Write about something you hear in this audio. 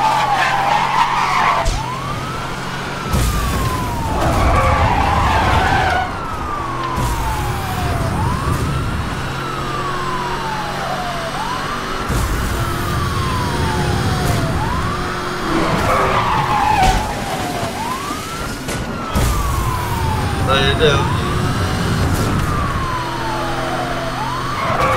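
A police siren wails up and down steadily.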